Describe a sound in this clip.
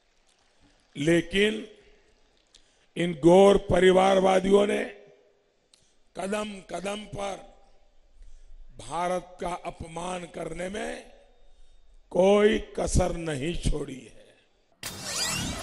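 An elderly man speaks forcefully into a microphone over loudspeakers, with pauses.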